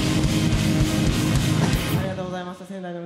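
A rock band plays loudly through amplifiers.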